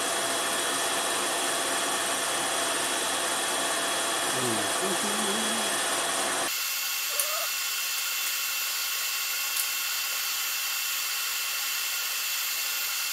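A machine hums steadily.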